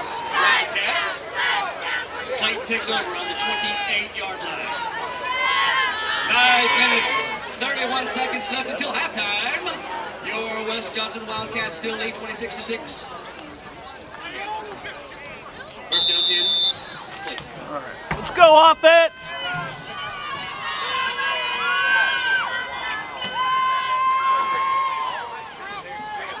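A crowd of young men and boys shouts and cheers outdoors.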